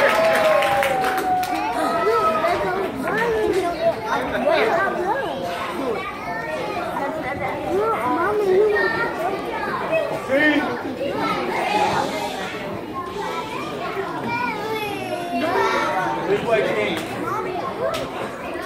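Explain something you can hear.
A crowd of people talks and cheers in a large echoing hall.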